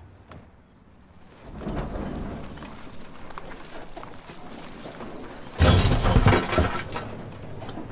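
Tyres roll over a bumpy dirt road.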